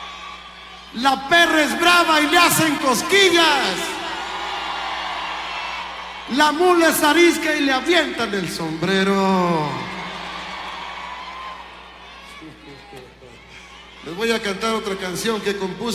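A man sings with feeling through a microphone.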